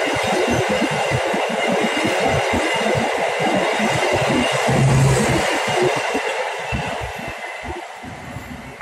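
A passing train rumbles and roars loudly close by, then fades away.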